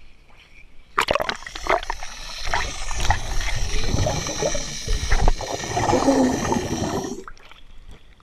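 Water splashes and churns loudly close by.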